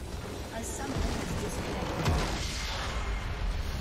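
A large crystal explodes with a deep, rumbling blast.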